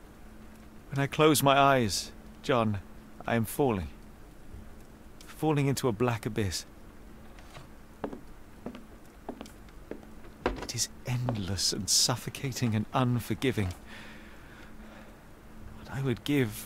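A man speaks slowly in a low, weary voice, close by.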